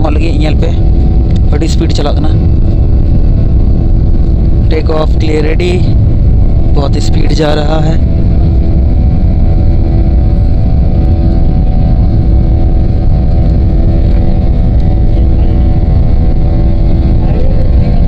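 An aircraft engine roars steadily from inside the cabin.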